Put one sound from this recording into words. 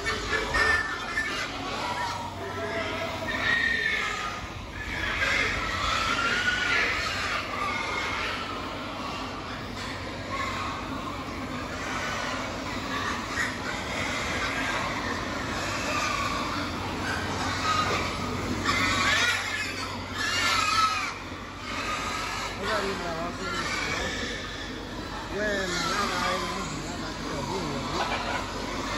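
Many pigs grunt and squeal nearby in a large echoing barn.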